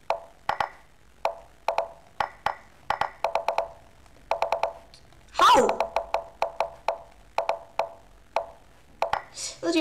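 Short chiming clicks sound rapidly, one after another.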